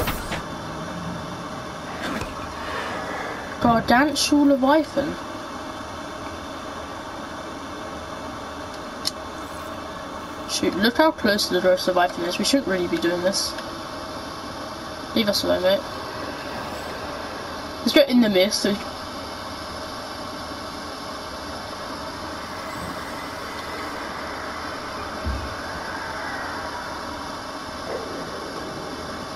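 A small submarine's engine hums steadily underwater.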